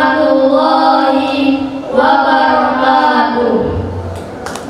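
Young boys sing together into microphones, heard through loudspeakers.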